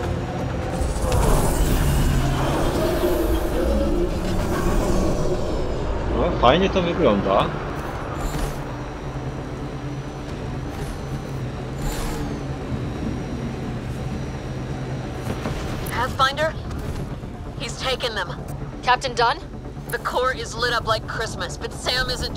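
A vehicle engine rumbles and whines steadily as it drives.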